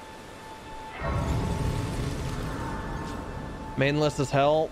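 A shimmering magical whoosh swells up and slowly fades.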